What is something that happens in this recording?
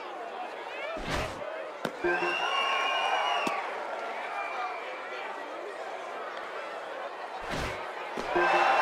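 A pitched ball smacks into a catcher's mitt.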